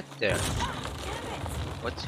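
Bats flap their wings overhead.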